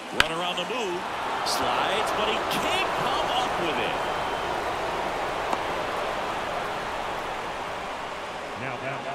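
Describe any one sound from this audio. A stadium crowd cheers loudly and slowly quiets.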